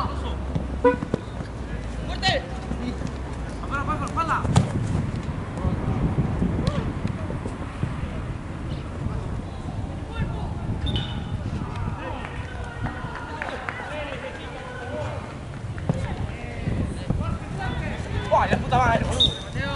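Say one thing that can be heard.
Young men shout to each other outdoors across a sports field.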